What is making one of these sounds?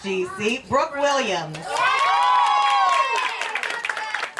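A crowd of young girls and adults cheers and squeals loudly.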